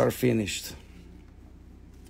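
A small stone clicks softly onto a plastic tray.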